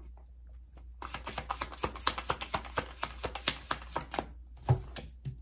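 Small hard objects click and tap rapidly in a man's hands.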